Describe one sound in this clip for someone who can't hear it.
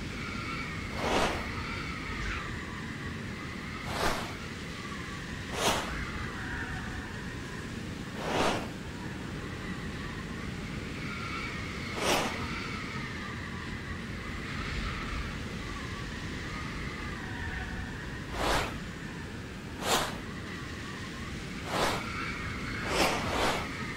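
A soft whoosh sounds each time a selection moves across a game map.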